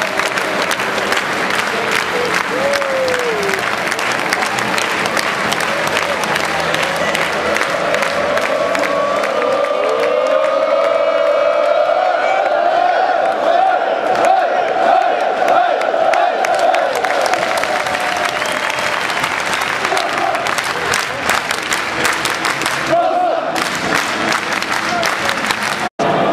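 Fans clap their hands.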